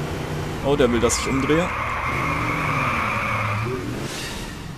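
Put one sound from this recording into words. Tyres skid and screech on asphalt.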